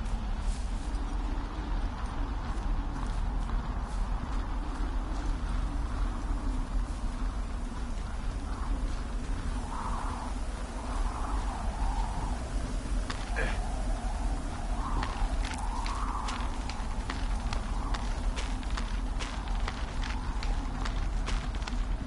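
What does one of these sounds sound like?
Burning wood crackles and pops.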